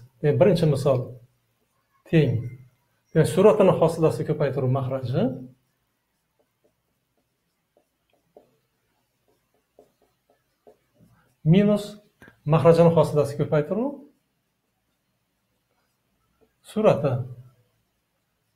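An elderly man speaks calmly and clearly, close by.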